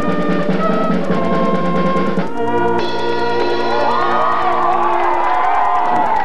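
A national anthem plays over a loudspeaker.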